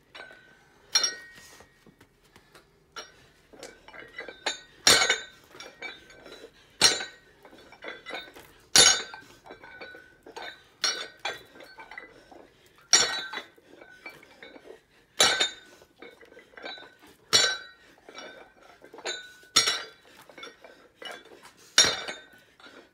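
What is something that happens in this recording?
Dumbbells thud down on a mat again and again.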